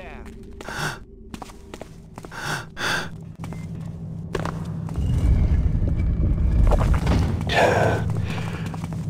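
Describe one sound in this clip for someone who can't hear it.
Footsteps scuff on a stone floor in an echoing passage.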